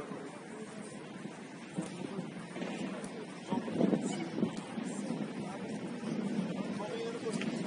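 Children shout and call out to each other across an open field.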